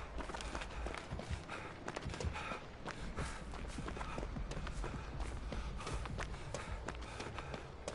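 Heavy footsteps tread through undergrowth.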